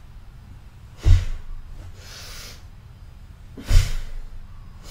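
Feet thump down onto a soft mattress.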